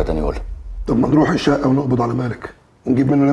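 A second man speaks in a low, firm voice.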